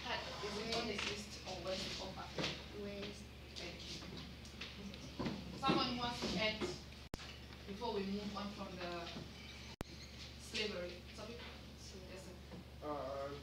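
A woman speaks calmly to a class nearby.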